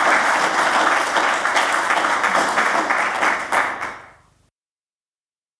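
An audience applauds in a large hall, then the clapping fades away.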